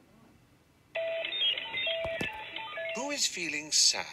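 A rapid electronic beeping plays from a laptop speaker.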